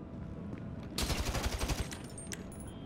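An assault rifle fires in rapid bursts.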